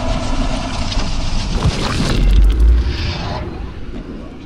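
A heavy crash roars and rumbles loudly.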